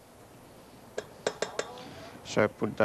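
A spatula taps and scrapes against a metal mixing bowl.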